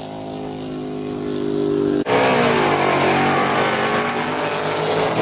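A car drives past with its engine humming.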